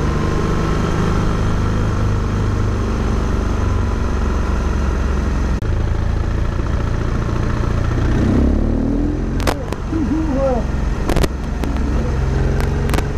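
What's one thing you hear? A bicycle's tyres hum on the road.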